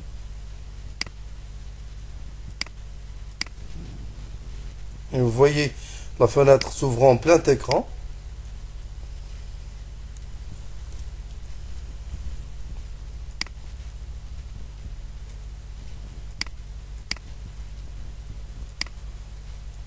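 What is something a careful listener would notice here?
A computer mouse clicks sharply a few times.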